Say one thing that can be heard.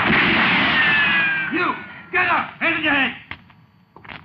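A man shouts loudly and frantically close by.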